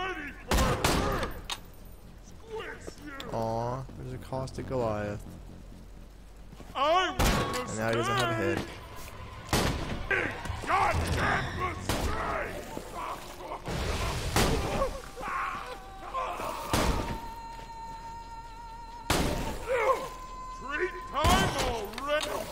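Rifle shots crack out now and then.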